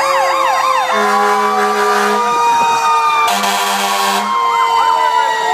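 A fire truck's air horn blasts in short bursts.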